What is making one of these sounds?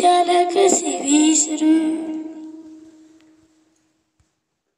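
A boy sings a long held note that slowly fades away.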